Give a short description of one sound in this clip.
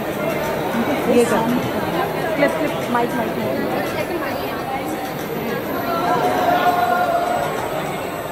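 A woman talks and laughs close to a microphone.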